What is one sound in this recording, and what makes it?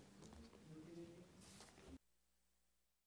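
An elderly man speaks calmly into a microphone in a reverberant room.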